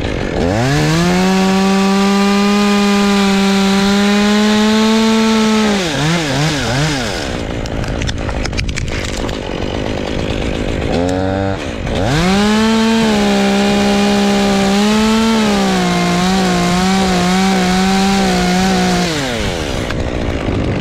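A chainsaw engine roars close by, revving up and down.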